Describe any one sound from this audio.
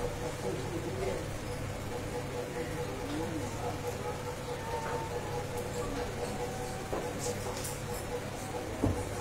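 A congregation of men and women murmurs quietly nearby.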